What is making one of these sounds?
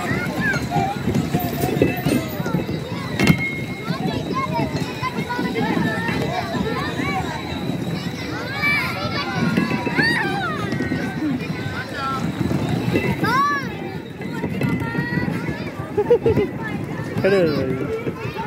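Many children chatter and shout excitedly nearby, outdoors.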